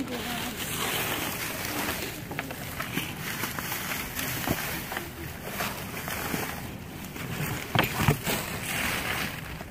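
Cardboard scrapes and thuds as it is shifted.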